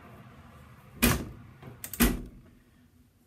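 A metal baking tray clatters onto a stovetop.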